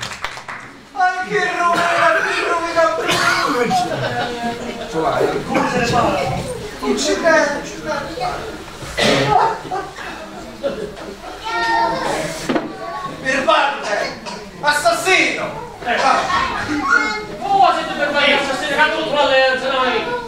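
A young woman speaks with animation from a stage, in an echoing hall.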